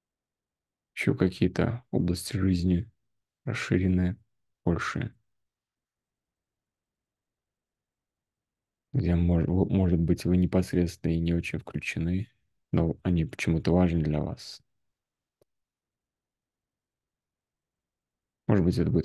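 A man speaks calmly over an online call.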